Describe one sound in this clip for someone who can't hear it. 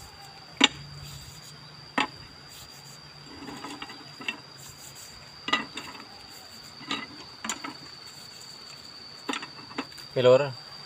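A stick taps sharply on a wooden box.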